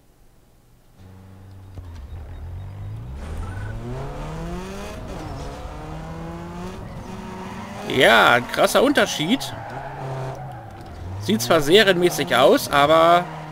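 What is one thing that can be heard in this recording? A car engine revs up and down, rising in pitch as it speeds up.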